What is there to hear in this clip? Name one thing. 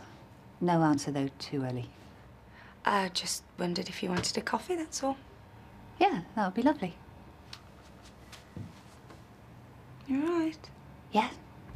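A young woman speaks playfully nearby.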